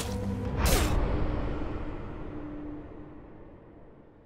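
A body thuds onto a wooden floor.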